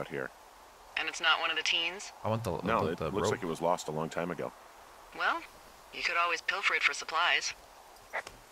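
A woman answers over a walkie-talkie.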